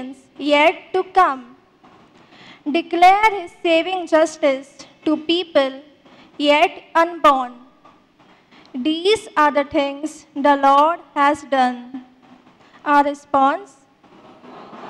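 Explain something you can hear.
A young woman reads out calmly through a microphone in a large echoing hall.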